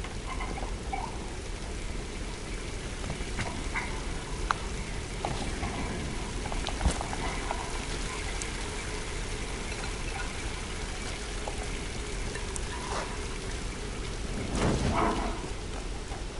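A torch flame crackles and flutters close by.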